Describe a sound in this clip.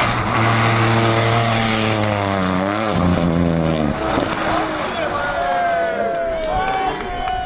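Gravel sprays and crackles under spinning tyres.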